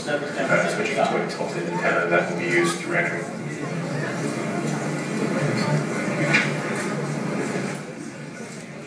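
A man speaks calmly over a loudspeaker in a large echoing room.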